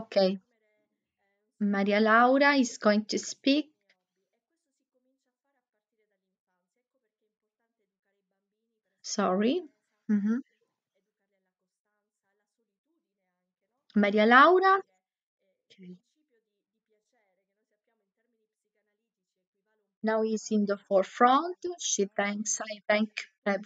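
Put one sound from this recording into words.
A woman speaks in bursts over an online call, with pauses between.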